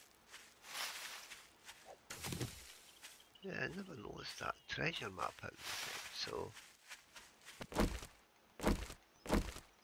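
Footsteps crunch over grass and rocks.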